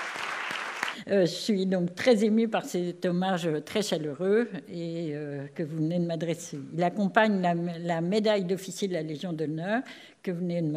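An elderly woman speaks calmly into a microphone over loudspeakers in a large hall.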